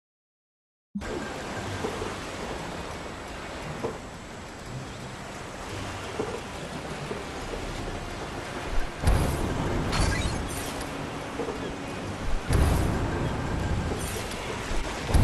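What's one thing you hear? Footsteps clank on a metal deck.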